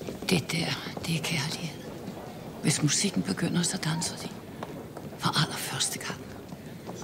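A band plays dance music in a large hall.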